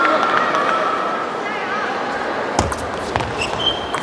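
A ping-pong ball clicks back and forth off paddles and a table.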